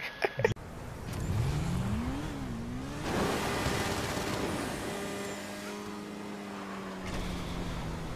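A motorcycle engine revs in a video game.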